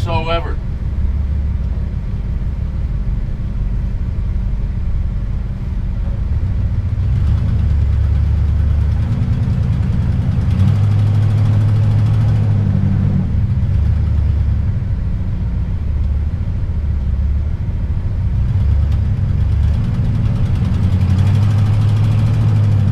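A large vehicle's engine rumbles steadily from inside the cabin.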